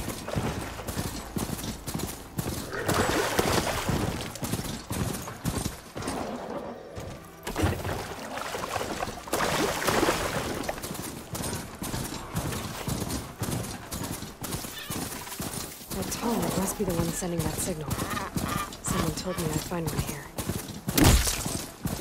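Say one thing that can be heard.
A mechanical beast's metal feet thud and clatter quickly over sand.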